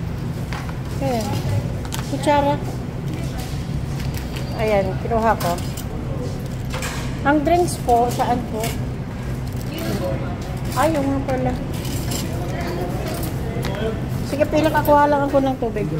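A woman speaks nearby in a calm voice.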